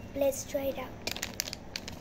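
A candy wrapper crinkles in a girl's hands.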